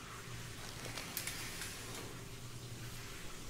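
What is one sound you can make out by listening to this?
A shower curtain slides along its rail.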